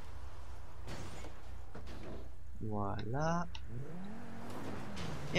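A car tumbles and crashes with heavy thuds.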